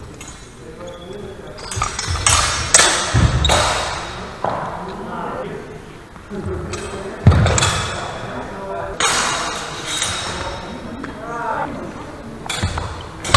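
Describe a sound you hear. Footsteps shuffle and squeak on a hard floor in a large echoing hall.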